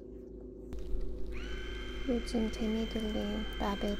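Buttons click as they are pressed.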